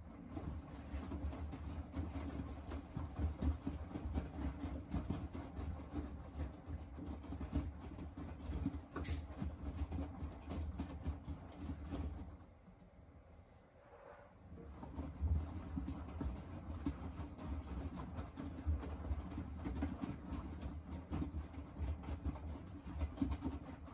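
Wet laundry tumbles and sloshes inside a washing machine drum.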